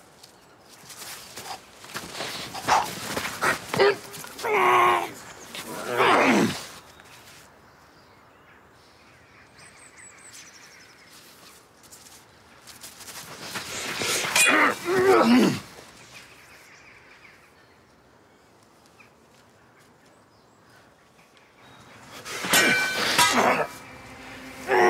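Swords clash with ringing metal clangs.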